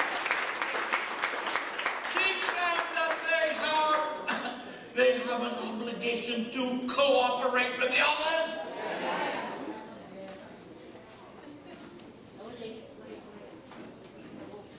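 An elderly man speaks with animation through a microphone and loudspeakers, in an echoing hall.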